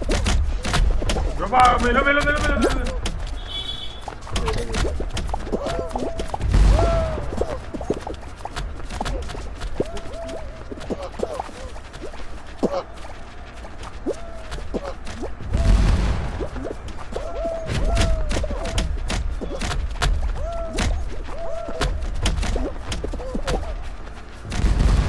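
Small cartoon characters patter and bump against each other.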